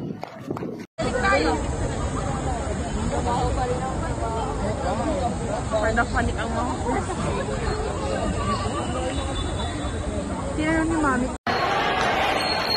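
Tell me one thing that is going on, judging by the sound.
A crowd of people talks outdoors.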